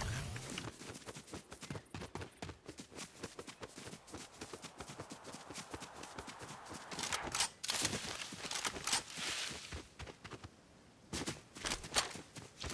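Footsteps patter quickly over grass and dirt.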